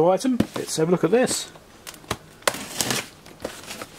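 Packing tape rips off a cardboard box.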